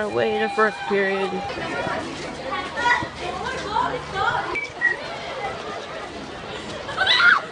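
A crowd of teenagers chatters and calls out nearby outdoors.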